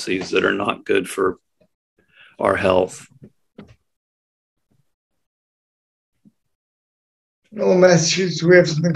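An elderly man speaks calmly through an online call, with pauses.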